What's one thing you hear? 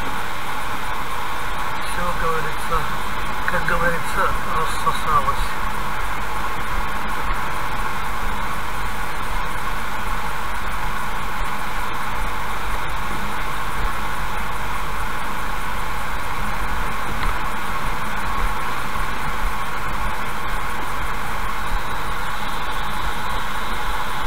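Tyres hum steadily on a wet road.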